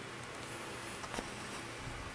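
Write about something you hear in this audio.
A hand brushes and taps against stretched fabric.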